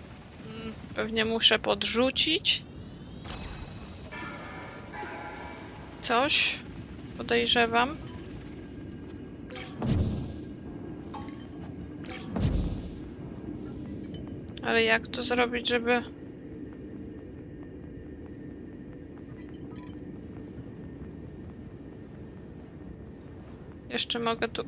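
Short bursts of bright, chiming electronic tones ring out.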